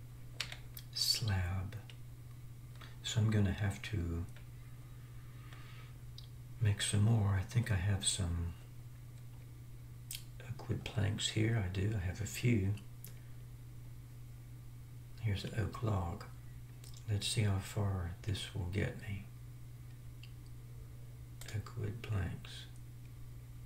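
An elderly man talks calmly into a close microphone, in short bursts with pauses.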